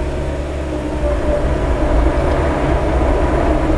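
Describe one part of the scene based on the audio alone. Excavator tracks clank and grind over dirt as the machine drives off.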